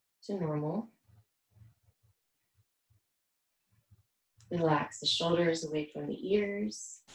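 A young woman speaks calmly and slowly, close by.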